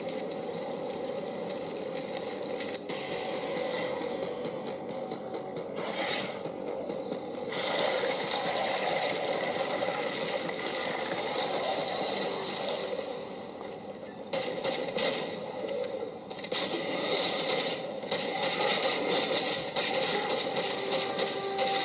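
Video game music and fight effects play from a tablet's small speaker.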